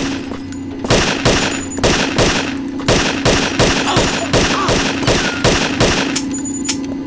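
A pistol fires a rapid series of loud shots.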